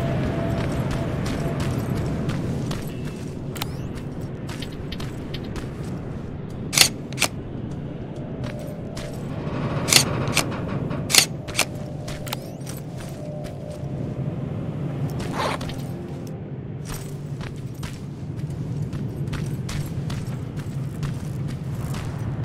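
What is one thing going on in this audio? Footsteps crunch over a hard floor.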